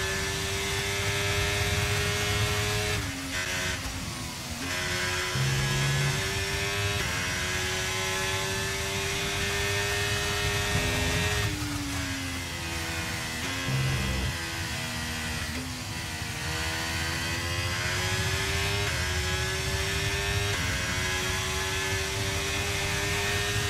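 A racing car engine screams at high revs, dropping in pitch at each gear change and climbing again.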